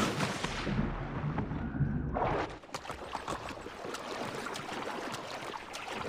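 Water splashes and sloshes as someone swims.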